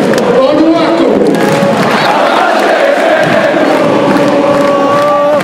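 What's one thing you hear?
A large crowd sings and chants loudly in an echoing arena.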